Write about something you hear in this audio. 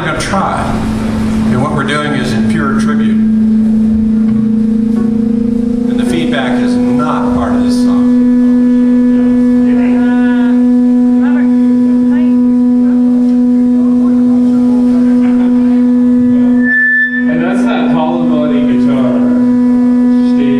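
A live band plays amplified electric guitars loudly.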